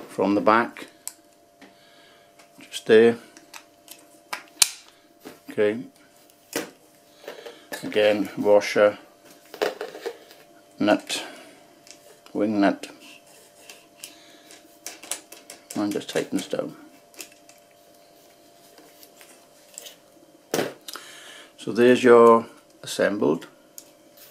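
Small metal parts click and tap as they are handled and fitted together.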